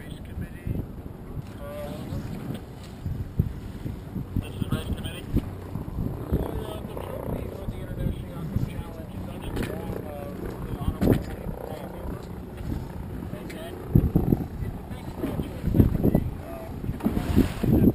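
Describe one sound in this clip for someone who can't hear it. Choppy water laps and splashes against a boat's hull.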